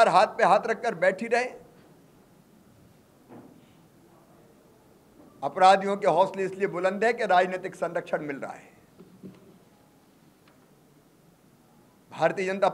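A middle-aged man speaks firmly into microphones, with pauses between phrases.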